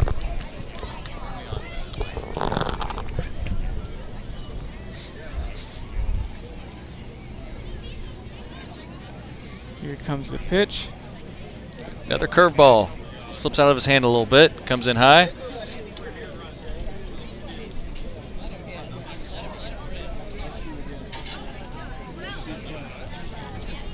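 A crowd chatters quietly in the background outdoors.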